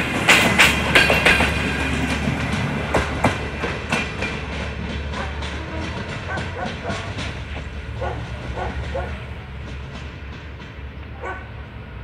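A passenger train rumbles past close by and fades into the distance.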